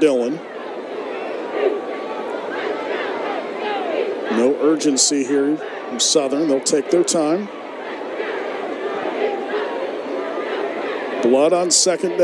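A large crowd cheers and chants in an open stadium.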